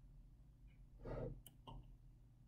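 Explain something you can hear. A young man blows soap bubbles with a soft puff of breath.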